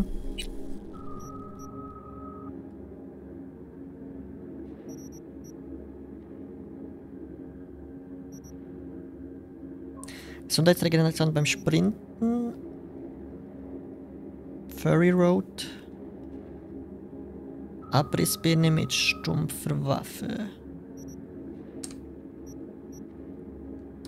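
Soft electronic blips sound as menu items are selected.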